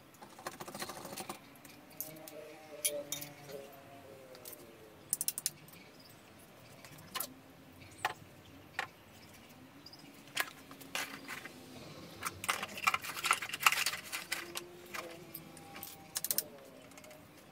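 Metal tools and parts clink and clatter sharply.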